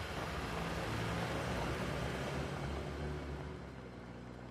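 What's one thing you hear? A car engine rumbles as the car drives away and fades into the distance.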